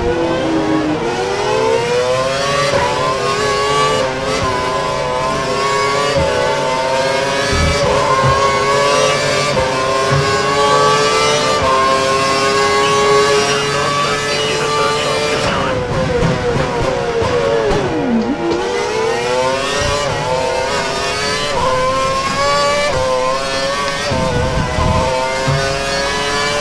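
Gear shifts crack in quick succession.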